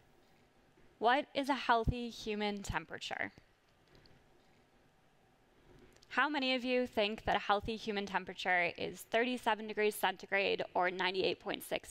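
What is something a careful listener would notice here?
A young woman speaks calmly through a microphone in a large hall.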